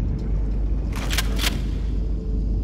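A gun clanks and rattles as it is handled.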